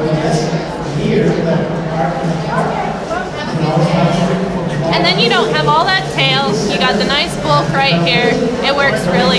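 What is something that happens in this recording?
A woman talks calmly and clearly, close to the microphone.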